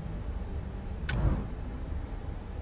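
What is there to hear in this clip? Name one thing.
A game chime sounds as a hint box pops up.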